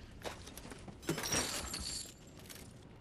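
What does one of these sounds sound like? A short burst of gunfire rings out.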